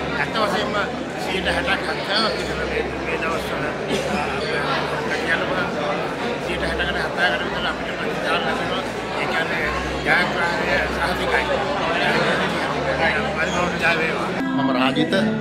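An elderly man speaks earnestly into a microphone close up.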